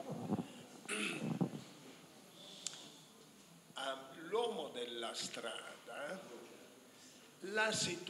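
An elderly man speaks into a handheld microphone.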